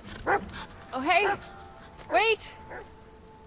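A young woman calls out loudly.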